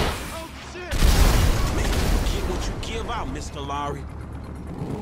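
An explosion booms loudly and rumbles away.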